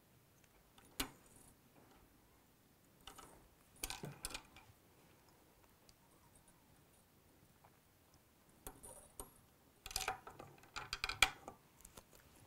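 Small tools tap and rustle softly close by.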